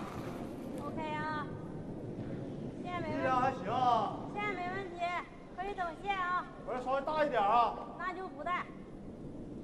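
A man shouts loudly in a large echoing hall.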